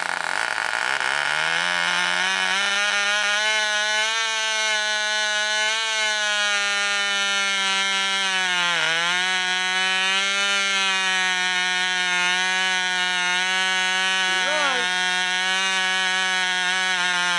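A small electric horn sounds a steady, buzzing tone that rises in pitch and then holds.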